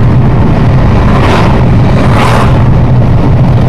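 Oncoming cars whoosh past.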